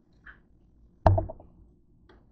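A plastic bottle is set down on a hard counter with a knock.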